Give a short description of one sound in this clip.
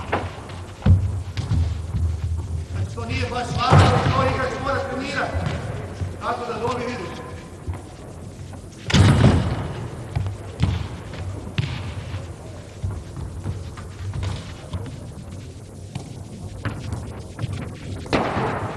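Sneakers squeak and patter on a hard floor.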